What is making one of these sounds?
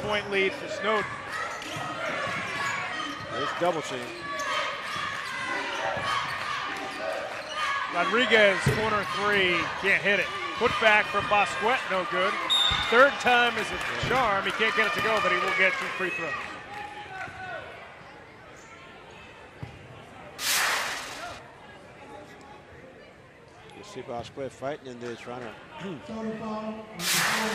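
A crowd cheers and murmurs in an echoing gym.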